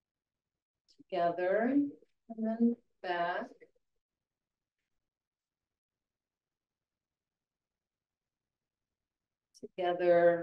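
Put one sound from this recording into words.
An elderly woman speaks calmly through a microphone on an online call.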